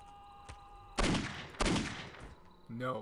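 Pistol shots ring out with a sharp crack.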